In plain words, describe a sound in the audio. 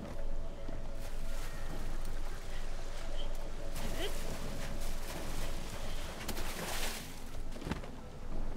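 Water gushes and splashes.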